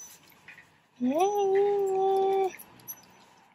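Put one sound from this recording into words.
A small dog lets out a long, rising whine.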